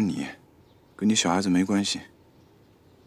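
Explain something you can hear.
A young man answers briefly, close by.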